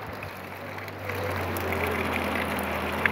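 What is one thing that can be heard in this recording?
Rain and wind rush steadily outdoors.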